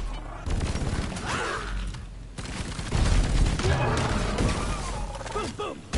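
An explosion booms with crackling electric bursts.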